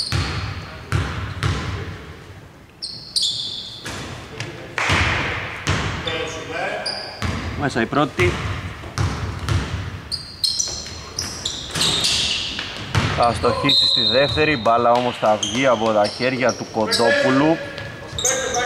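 A basketball bounces on a hardwood floor in a large echoing hall.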